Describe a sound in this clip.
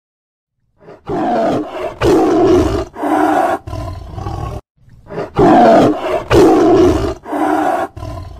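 A large cat roars and snarls loudly.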